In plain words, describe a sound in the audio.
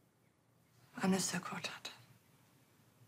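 A young woman answers briefly close by.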